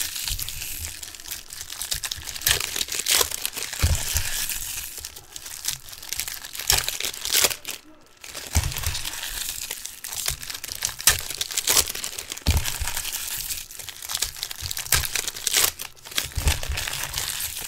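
Trading cards flick and slap together as they are shuffled and stacked.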